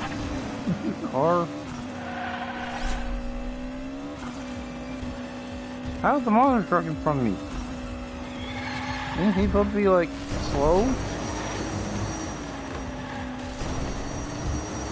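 A small toy car's electric motor whines steadily as the car races.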